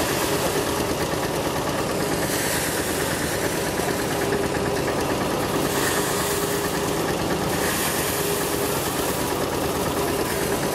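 An engine drones nearby.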